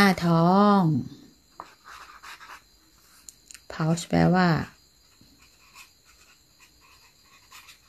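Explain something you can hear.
A marker squeaks softly as it writes on paper.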